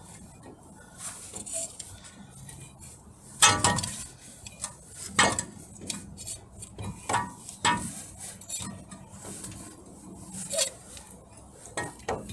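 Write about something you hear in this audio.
A hand fiddles with a plastic part, scraping and clicking.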